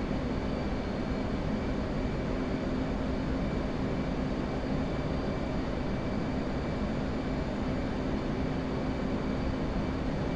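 A jet engine roars steadily, heard from close by.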